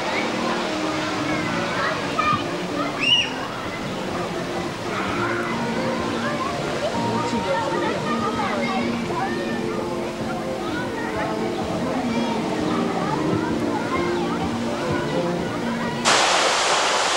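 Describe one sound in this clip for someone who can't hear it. A crowd of adults and children chatters and calls out outdoors.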